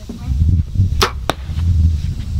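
A bowstring snaps sharply as an arrow is released.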